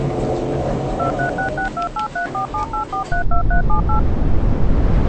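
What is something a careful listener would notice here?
Electronic beeps chime in a quick pattern.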